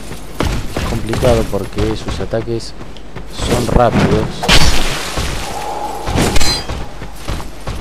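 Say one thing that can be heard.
Blades slash and strike with sharp metallic hits.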